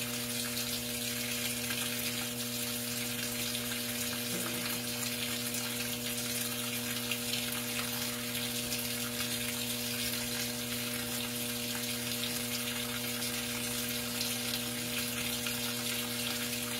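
Water pours steadily into a washing machine drum.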